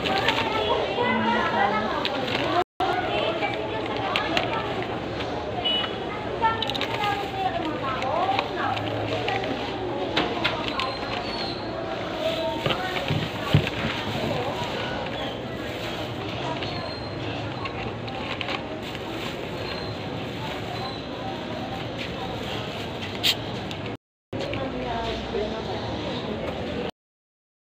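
Many voices chatter in the background.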